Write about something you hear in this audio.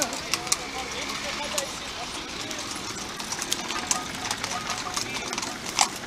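Horse hooves clop on paving stones.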